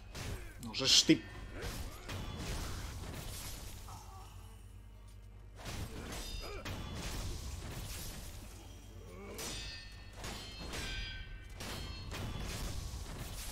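Steel swords clash and ring sharply.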